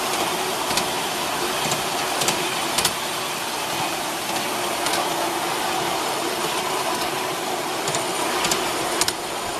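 A miniature train rumbles steadily along its track outdoors.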